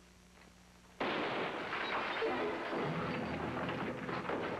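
Men scuffle and grapple noisily.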